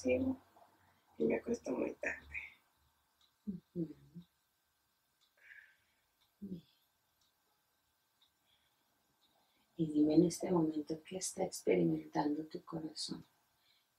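A middle-aged woman speaks calmly and close by.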